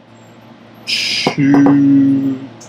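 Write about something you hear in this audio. Powder pours into a metal bowl.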